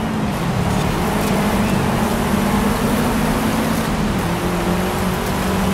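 Tyres crunch and skid over loose gravel.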